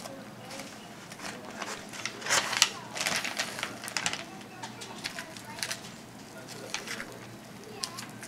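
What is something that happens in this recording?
Raw meat squelches and tears as hands pull it apart.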